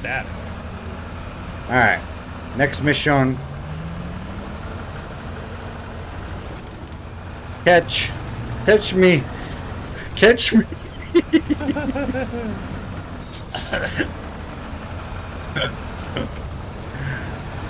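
A truck engine rumbles steadily as it crawls along.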